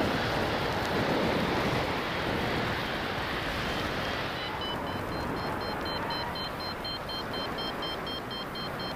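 Wind rushes steadily past outdoors in flight.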